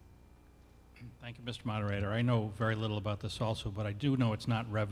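A middle-aged man speaks through a microphone and loudspeakers in a large hall.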